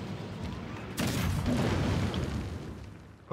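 A loud blast booms and rumbles.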